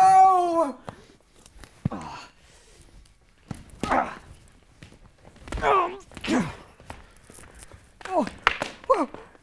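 Men shout and cry out in exaggerated, theatrical voices.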